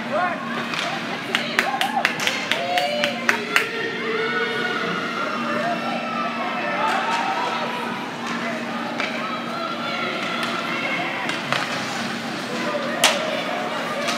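Hockey sticks clack and pucks knock against the boards.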